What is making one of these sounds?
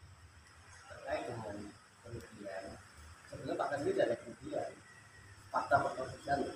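A middle-aged man speaks calmly into a nearby microphone.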